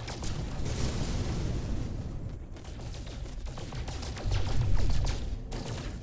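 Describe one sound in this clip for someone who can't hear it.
A man talks into a microphone.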